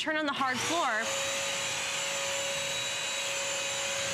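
A vacuum cleaner hums and whirs steadily.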